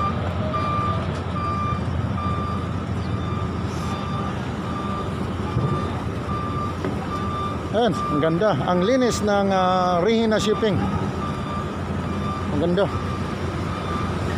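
A ship's engine hums low and steadily.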